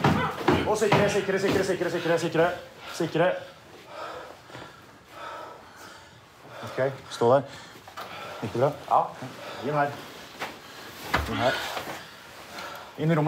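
Boots step on a hard floor.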